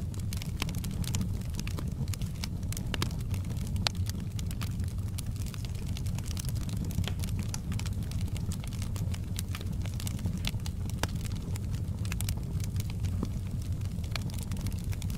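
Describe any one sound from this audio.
Burning logs crackle and pop steadily.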